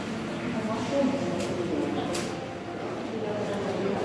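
A shopping cart rattles as it rolls across a hard floor.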